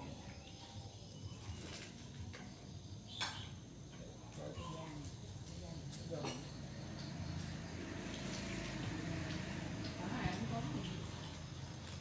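Dishes and utensils clink softly.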